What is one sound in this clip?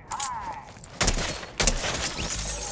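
A blow smashes a jar with a sharp crack.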